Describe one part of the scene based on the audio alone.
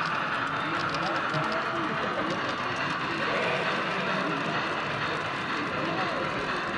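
A model train rolls along its track with a soft rumble.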